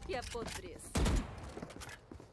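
A gun fires in a video game.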